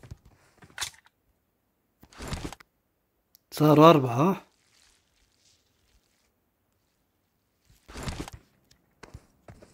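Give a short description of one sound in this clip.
Footsteps thump on wooden stairs.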